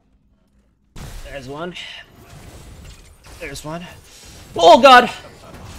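Game combat effects clash and burst.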